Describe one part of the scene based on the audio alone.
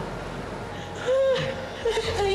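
A woman shouts angrily.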